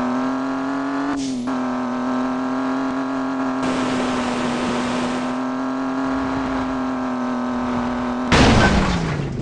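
A car engine hums steadily at high revs.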